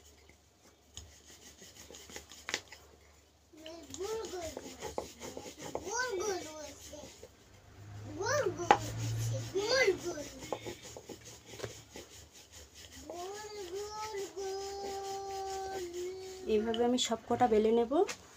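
A rolling pin rolls and thumps softly on a wooden board.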